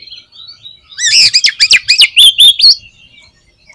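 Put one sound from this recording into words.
A songbird gives a loud burst of rapid, harsh calls.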